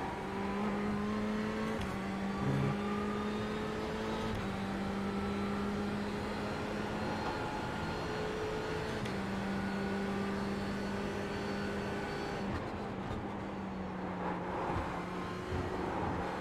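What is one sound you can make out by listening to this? A racing car engine roars steadily, its pitch stepping up and down with gear changes.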